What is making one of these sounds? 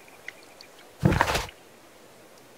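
A book's pages flip open with a papery rustle.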